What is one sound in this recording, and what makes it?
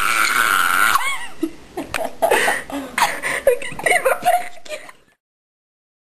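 A young woman laughs up close.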